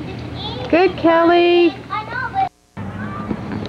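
A young girl talks loudly close by.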